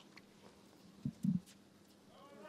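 A tennis ball is struck hard with a racket.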